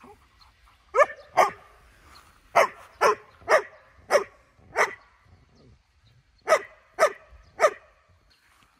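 A dog barks sharply several times nearby.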